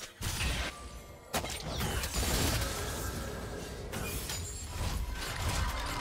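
Game weapons clash and hit.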